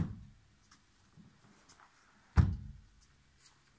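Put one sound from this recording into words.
A sofa bed section slides shut with a dull thump.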